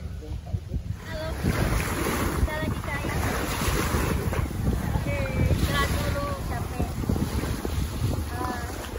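Small waves lap gently on a shore.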